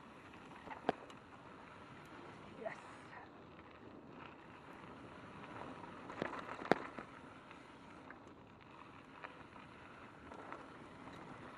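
A bicycle rattles and clanks sharply over bumps.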